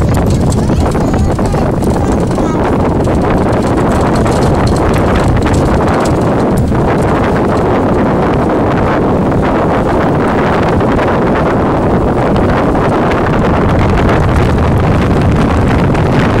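Wind buffets loudly across the microphone.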